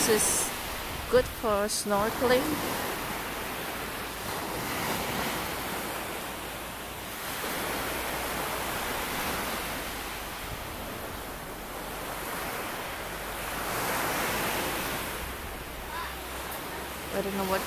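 Small waves wash and break on a pebbly shore.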